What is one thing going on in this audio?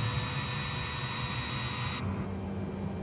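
Jet engines whine and roar steadily at idle.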